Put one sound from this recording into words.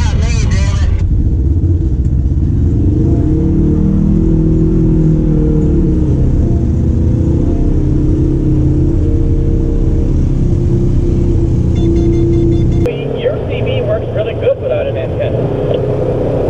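Tyres roll over a dirt road.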